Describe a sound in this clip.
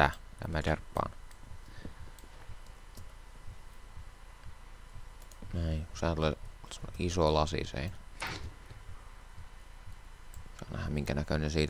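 An axe chops at wood with quick dull knocks.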